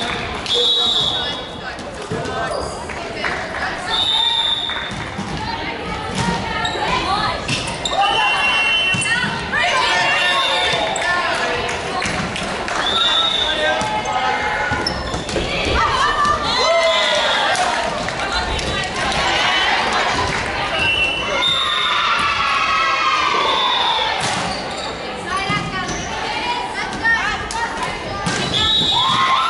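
Young women call out and shout to each other during play.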